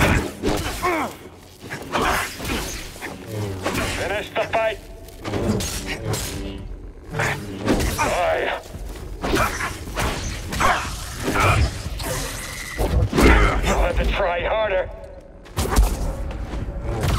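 Lightsabers clash with sharp crackling hits.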